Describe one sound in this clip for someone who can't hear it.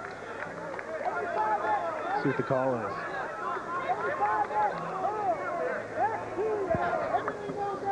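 A crowd of many voices chatters and shouts loudly outdoors.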